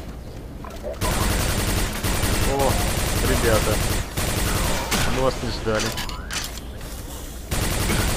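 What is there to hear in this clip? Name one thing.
An energy gun fires in rapid bursts.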